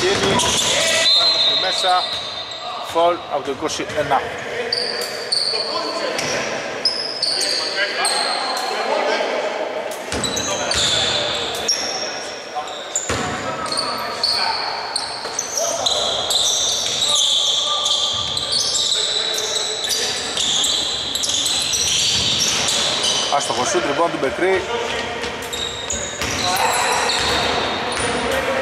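Sneakers squeak sharply on a court in a large echoing gym.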